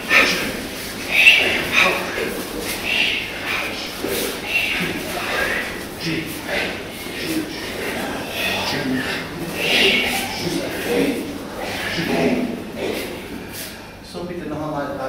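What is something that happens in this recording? Wooden swords swish through the air in repeated strokes.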